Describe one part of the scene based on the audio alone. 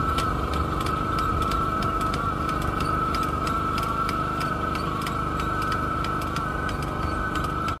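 A small engine chugs steadily at a distance, outdoors.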